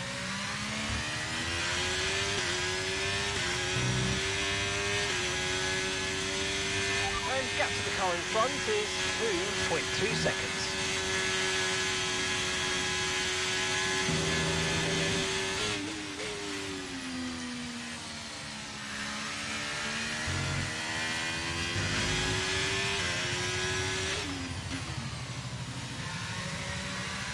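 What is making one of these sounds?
A racing car engine screams at high revs, shifting up through the gears and then dropping as it brakes for a corner.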